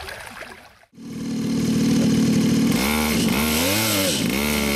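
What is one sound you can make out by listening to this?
A small motorbike engine idles and revs up.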